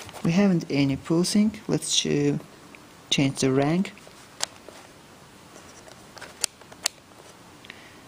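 A rotary dial clicks as it is turned.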